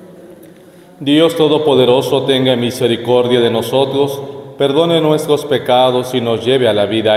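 A man speaks with animation into a microphone, heard through a loudspeaker.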